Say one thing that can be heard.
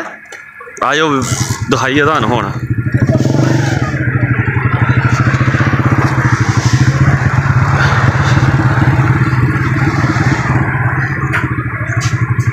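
A motor engine putters steadily close by.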